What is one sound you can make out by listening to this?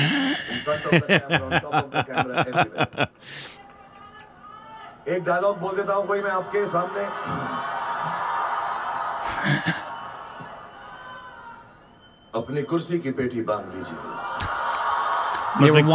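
Two men laugh heartily close to microphones.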